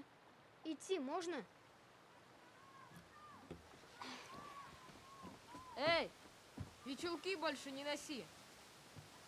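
A young boy speaks calmly nearby.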